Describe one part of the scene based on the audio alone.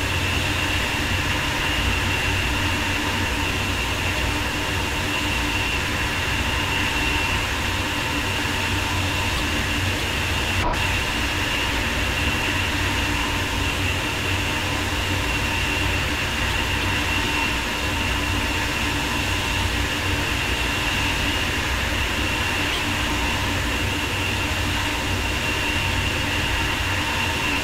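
A high-speed train rumbles steadily along the rails with a constant electric whine.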